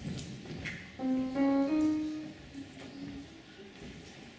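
A saxophone plays a few short notes in an echoing hall.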